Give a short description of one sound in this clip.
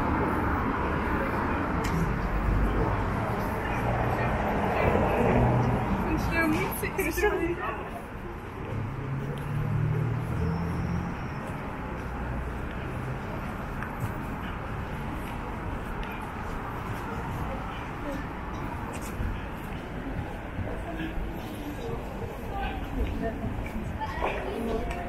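Street traffic hums in the distance outdoors.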